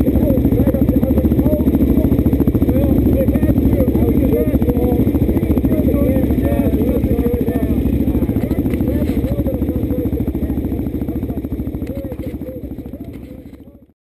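A motorcycle engine idles nearby with a steady throb.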